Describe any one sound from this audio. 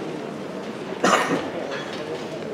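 A cymbal crashes in the band.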